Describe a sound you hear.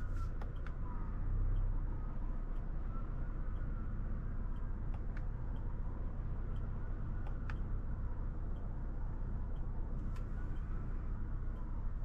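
Tyres rumble over the road surface.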